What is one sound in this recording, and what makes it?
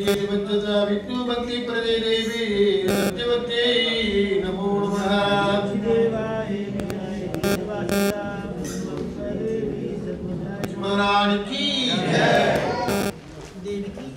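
Voices sing a chant together.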